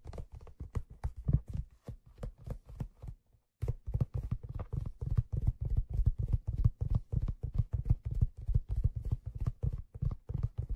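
Fingertips tap quickly and softly on a hollow drum close by, giving a low, booming ring.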